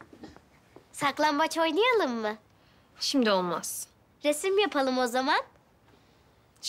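A young girl speaks excitedly and cheerfully up close.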